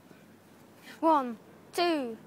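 A boy cries out loudly in pain.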